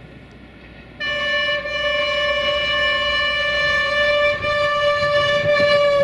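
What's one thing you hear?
A train horn blares loudly and steadily.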